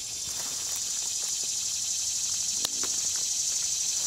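Dry pine needles rustle softly under a hand.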